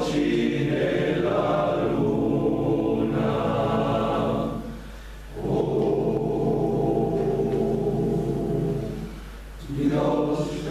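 A men's choir sings together in a reverberant hall, pausing between phrases.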